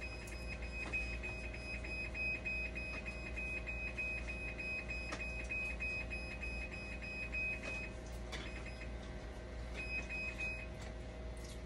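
A dialysis machine sounds a rapid beeping alarm.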